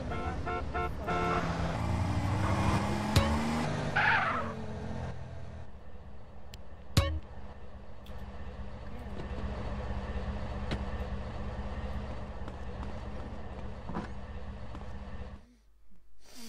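A car engine rumbles and revs loudly.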